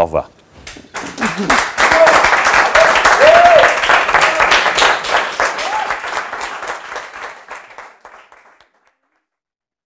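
A small group of people applaud.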